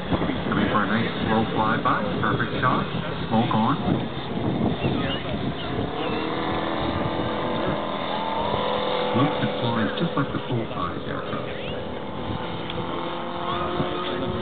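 A small propeller plane drones overhead, its engine pitch shifting as it turns.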